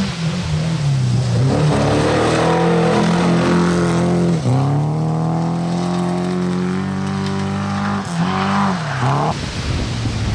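A rally car engine roars at high revs, dropping in pitch with each gear change as it speeds past.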